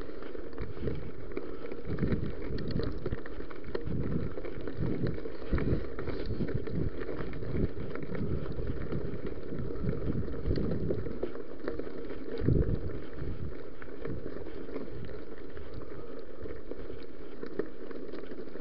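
A bicycle frame rattles and clunks over bumps.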